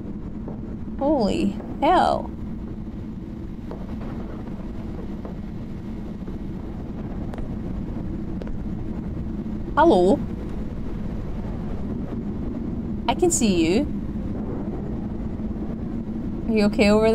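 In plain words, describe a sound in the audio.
A young woman speaks in short bursts close to a microphone.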